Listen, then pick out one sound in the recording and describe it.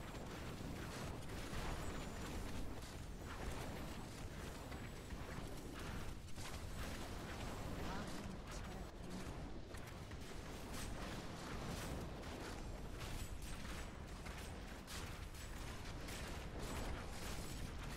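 Fire roars and crackles steadily.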